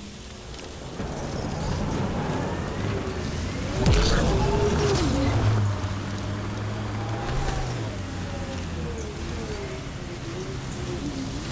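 A vehicle engine hums and roars as it drives over rough ground.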